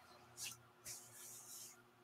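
Hands smooth and pat a folded piece of cloth.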